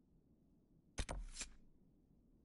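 A menu clicks softly a few times.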